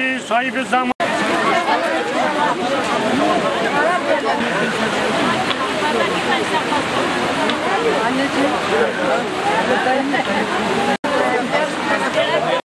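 A large crowd of men and women chatters loudly outdoors.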